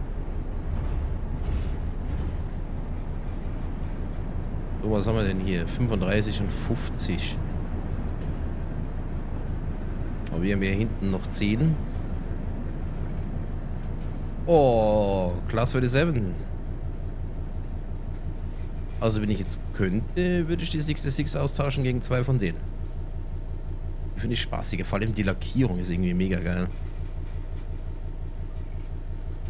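Train wheels roll over the rails.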